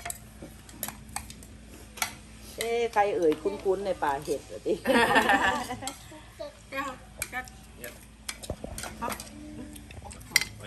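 Spoons clink against plates.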